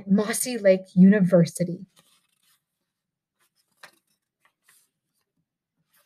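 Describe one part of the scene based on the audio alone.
A book page rustles as it turns.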